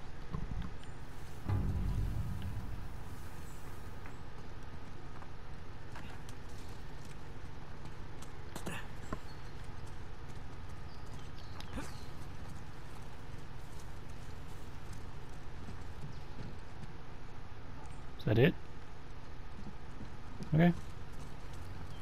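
Leaves rustle as a man pushes through plants.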